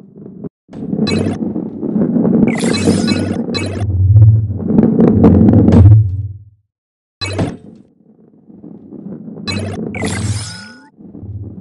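Bright chimes ring out in short bursts.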